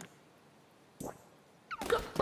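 A soft whoosh sweeps past.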